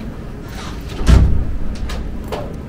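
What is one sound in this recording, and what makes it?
A door latch clicks and a door swings open.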